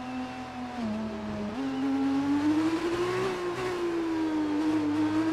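A racing car engine whines at high pitch, dropping briefly as it shifts gear, then climbing again.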